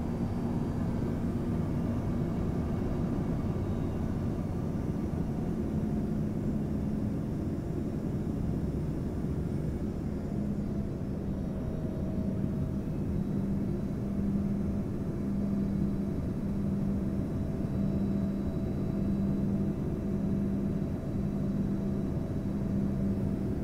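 An airplane's propeller engine drones steadily and loudly.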